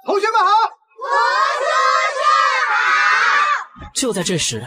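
A crowd of children shouts a greeting in unison.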